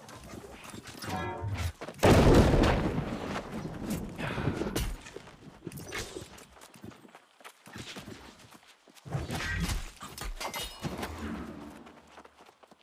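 Heavy blows and weapon strikes thud and crash in a fight.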